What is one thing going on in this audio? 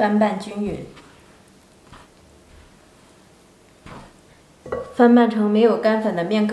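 A spatula scrapes and stirs crumbly dough in a bowl.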